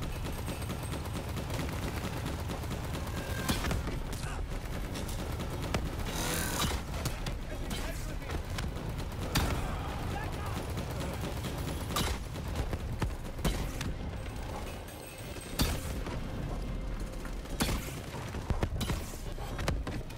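A heavy robot walks with clanking, whirring mechanical steps.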